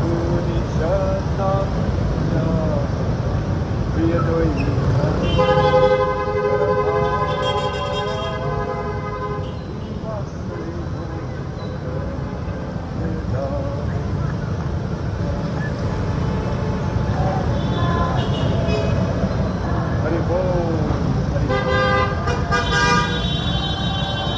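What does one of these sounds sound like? Car and motorbike tyres hiss on a wet road.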